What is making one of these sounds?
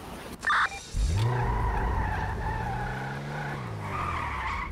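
A sports car engine starts and revs as the car drives off.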